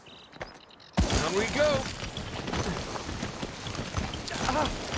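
Gravel scrapes and rattles as a man slides down a slope.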